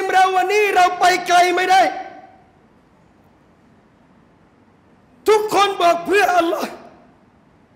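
A man speaks with animation into a close microphone, in bursts with pauses.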